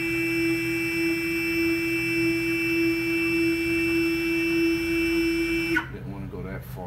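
A router spindle whines steadily at a high pitch while cutting, then abruptly stops.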